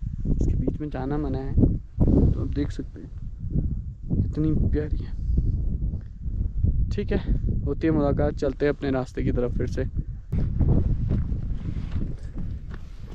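Footsteps crunch on dry grass and gravel.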